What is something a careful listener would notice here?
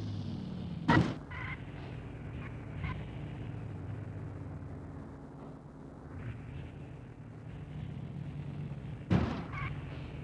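A car door shuts with a sharp thud.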